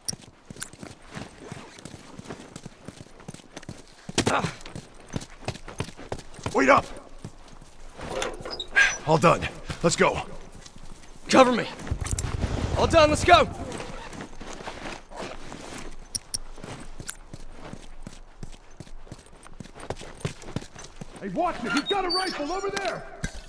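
Footsteps patter quickly over grass and pavement.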